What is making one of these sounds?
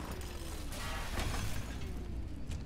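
A cutting tool grinds against metal with a harsh, crackling hiss.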